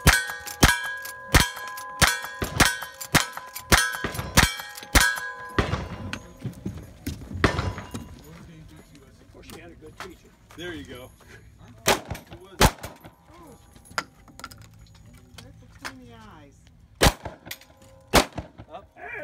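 Gunshots fire in rapid succession outdoors, then a few more shots ring out.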